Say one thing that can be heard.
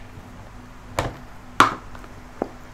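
A card box is set down on a table with a knock.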